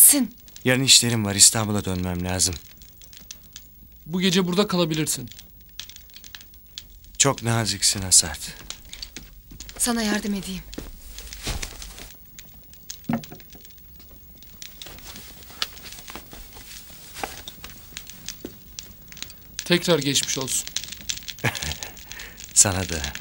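A fire crackles softly in a fireplace.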